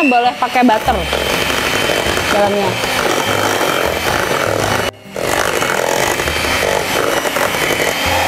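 An electric hand mixer whirs steadily in a metal bowl.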